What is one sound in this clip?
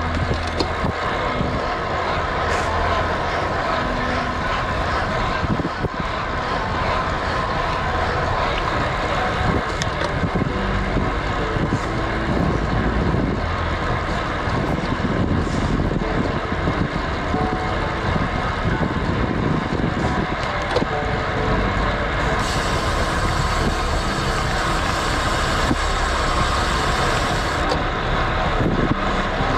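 Wind rushes past a road bike descending fast.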